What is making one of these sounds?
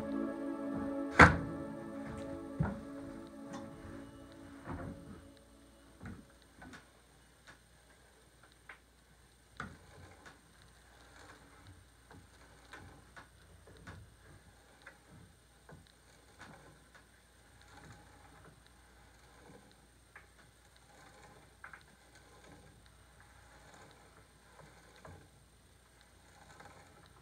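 A slowly turning drill bit scrapes and knocks against wood.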